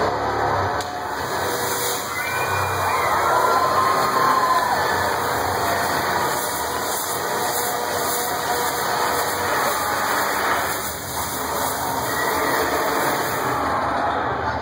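An angle grinder screeches loudly against metal.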